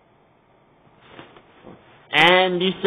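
A plastic toy figure rustles and bumps against a soft blanket.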